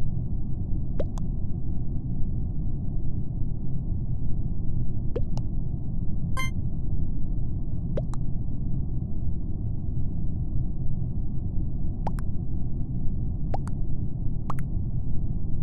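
Short electronic blips sound from a game as votes come in.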